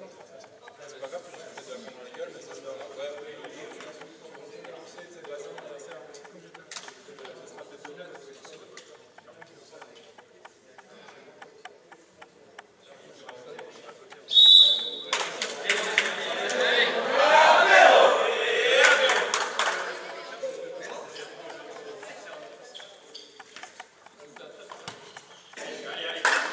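Young players chatter and talk in a large echoing hall.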